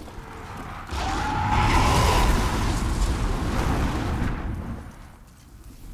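A fire roars loudly nearby.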